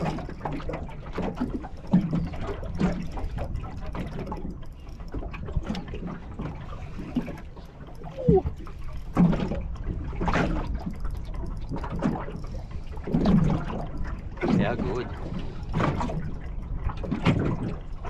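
Wind blows outdoors, rumbling low.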